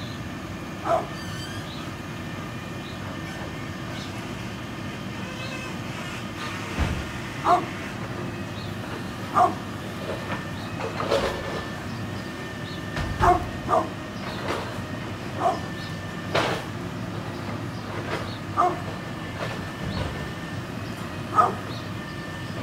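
A dog barks loudly now and then outdoors.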